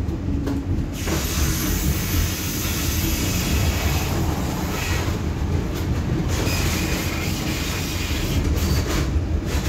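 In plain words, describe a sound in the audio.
Another tram passes close by with a whooshing rush.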